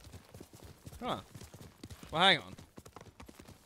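A horse whinnies loudly twice.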